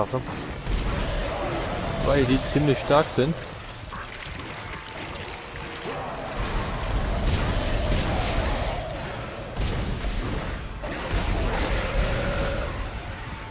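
A monstrous creature shrieks and snarls.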